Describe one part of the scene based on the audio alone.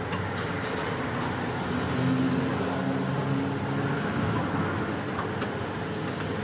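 Metal tools clink against a car's wheel hub.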